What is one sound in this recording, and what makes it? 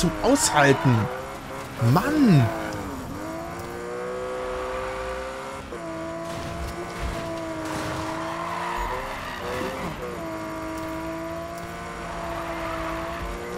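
Car tyres screech.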